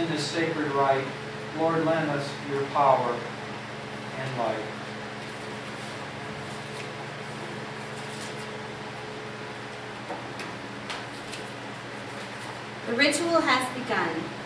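A woman reads aloud calmly.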